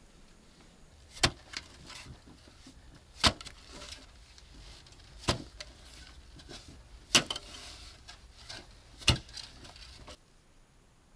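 Loose soil scrapes and rustles as it is dragged.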